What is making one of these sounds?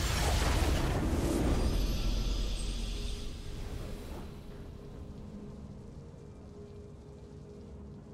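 A triumphant fanfare swells and then slowly fades away.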